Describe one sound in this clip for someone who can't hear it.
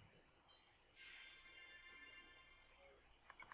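A healing spell chimes and sparkles.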